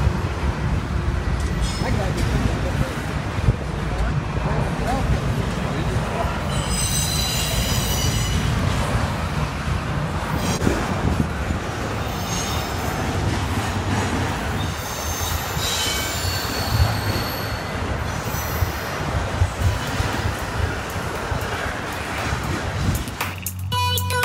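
A long freight train rumbles steadily past on the tracks.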